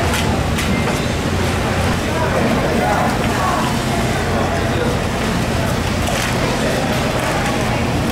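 A heavy fish slides and thumps on a wet board.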